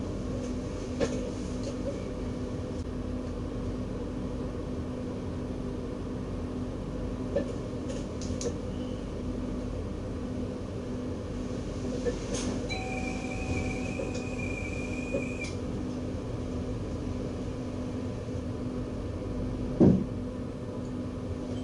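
A train's engine hums steadily while it idles.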